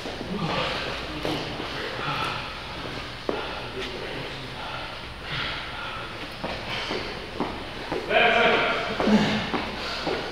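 A man speaks loudly, as if coaching a group, in an echoing room.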